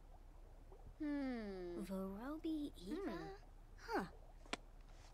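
A game character babbles in a high, sing-song voice.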